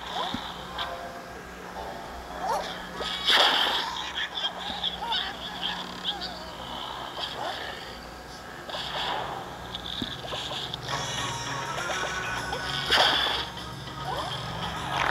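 Cartoon popping and splatting effects sound rapidly.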